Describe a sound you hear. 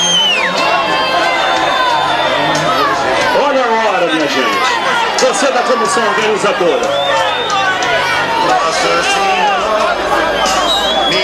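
A crowd of men and women shouts and cheers loudly outdoors.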